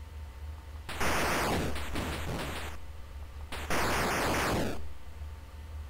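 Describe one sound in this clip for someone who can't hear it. Harsh electronic noise bursts from a video game sound out twice.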